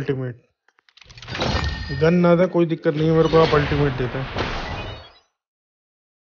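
A bright, magical reward jingle swells with chiming tones and then fades away.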